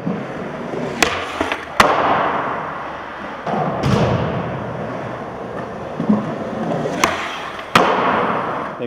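A skateboard clatters as it lands hard on the ground.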